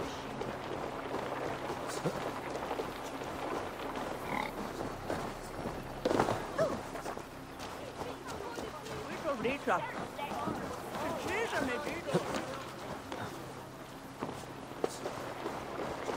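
Footsteps patter quickly across roof tiles.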